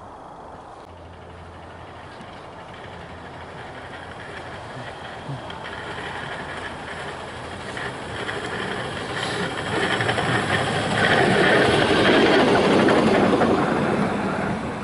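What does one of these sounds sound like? A road-rail vehicle rolls along the tracks, coming closer and passing loudly.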